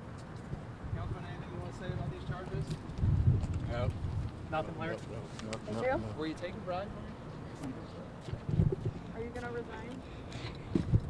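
A man speaks into nearby microphones.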